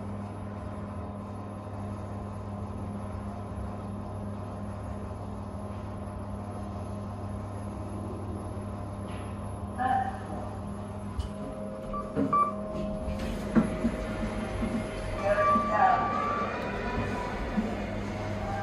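A lift motor hums steadily.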